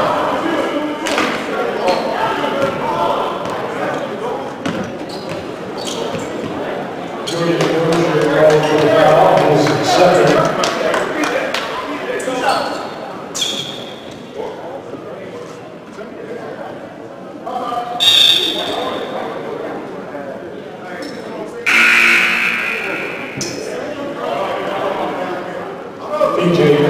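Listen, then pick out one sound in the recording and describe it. A crowd in a large echoing gym murmurs and cheers.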